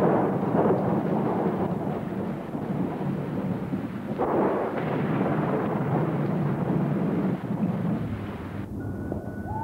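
Thunder rumbles and crashes loudly.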